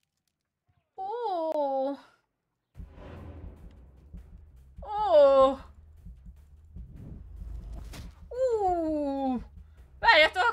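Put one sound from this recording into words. A young woman exclaims loudly into a microphone, close by.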